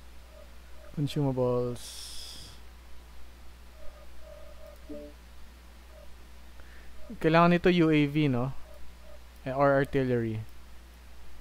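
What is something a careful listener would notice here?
A man speaks into a microphone in short bursts.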